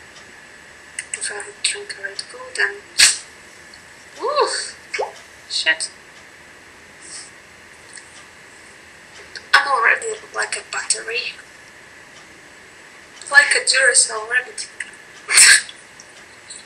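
A young woman talks close to a microphone with animation, in bursts.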